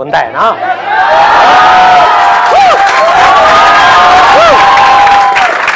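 A large crowd laughs and cheers loudly.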